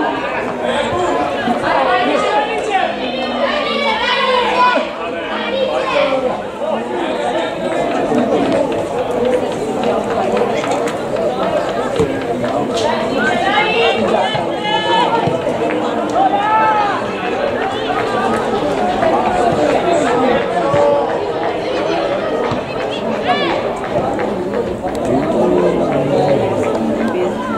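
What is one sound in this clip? Young women shout to each other across an open field in the distance.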